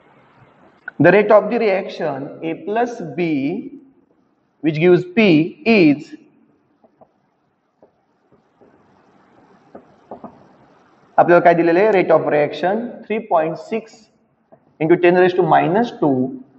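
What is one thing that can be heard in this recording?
A man speaks steadily nearby, explaining in pauses.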